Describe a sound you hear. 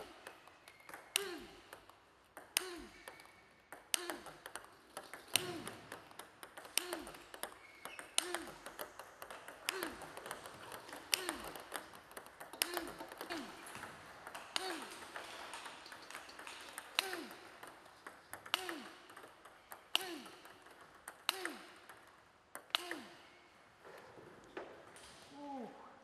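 A table tennis ball clicks sharply off paddles in a steady rally.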